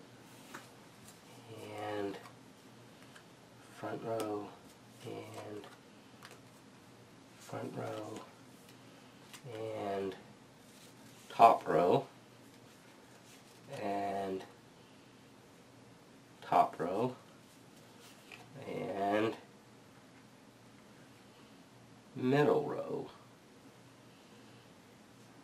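Playing cards tap and slide softly on a cloth-covered table.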